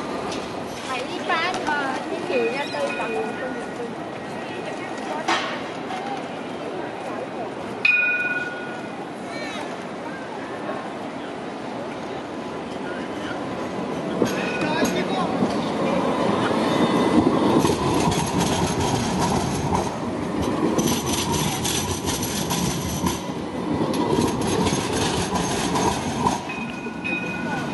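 A busy city street hums steadily outdoors.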